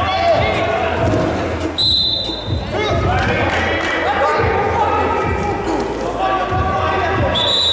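A man shouts instructions loudly from nearby.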